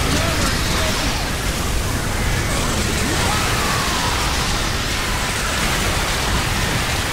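Fiery explosions boom and crackle.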